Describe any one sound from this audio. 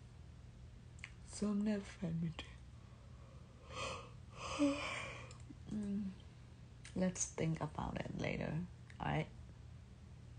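A young woman talks close to the microphone in short bursts.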